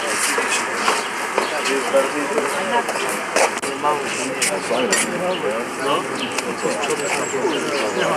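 A crowd of men talks and murmurs all around outdoors.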